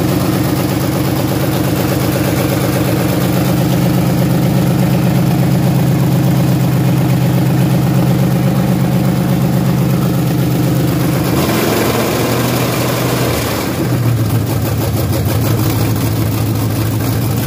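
A car engine idles loudly with a steady rumble.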